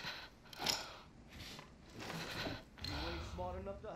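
A wooden drawer slides open.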